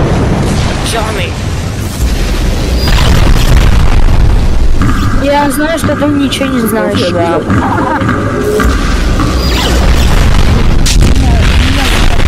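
Laser cannons fire in loud bursts.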